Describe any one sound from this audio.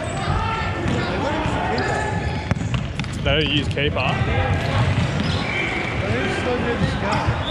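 Many players shout and call out to each other in an echoing hall.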